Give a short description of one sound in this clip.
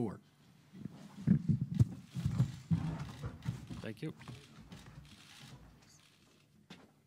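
A chair knocks and scrapes as a man gets up.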